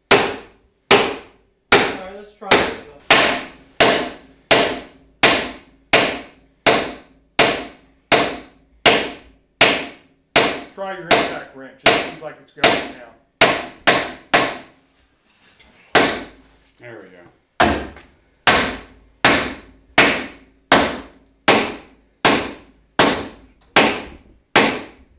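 A hammer strikes metal again and again in a fast, steady rhythm, each blow ringing.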